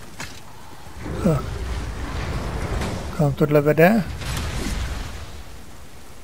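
A heavy stone door grinds open with a deep rumble.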